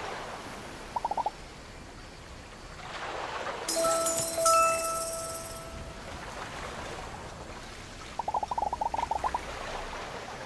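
Quick chirpy blips patter in short bursts.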